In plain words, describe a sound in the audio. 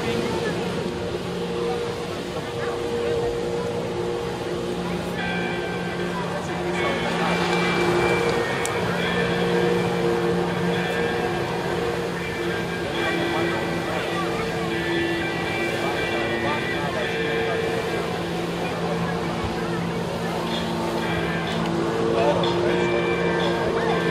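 Water jets blast and spray onto the sea surface.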